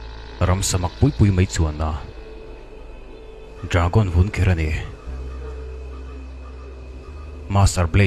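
A man speaks in a low, calm voice nearby.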